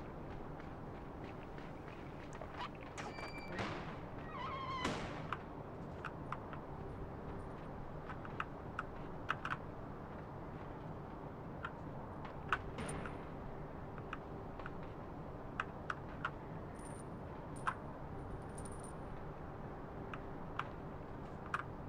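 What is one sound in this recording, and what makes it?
Light footsteps tap on metal.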